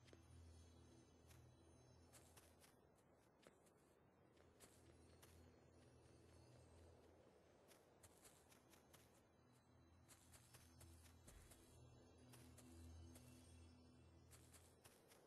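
Short sharp clicks and hits sound in quick bursts.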